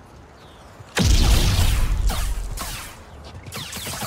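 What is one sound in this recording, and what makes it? A lightsaber ignites with a loud crackling hum.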